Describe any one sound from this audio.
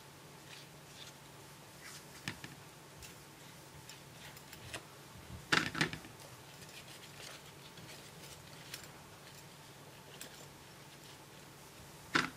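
Tissue paper crinkles softly as it is handled.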